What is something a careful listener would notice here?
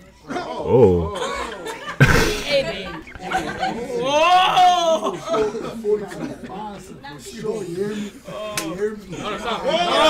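A young woman talks and laughs with animation close by.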